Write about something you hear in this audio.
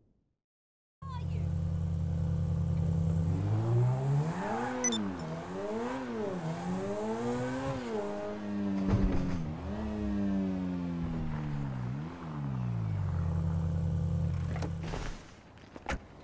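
A sports car engine idles.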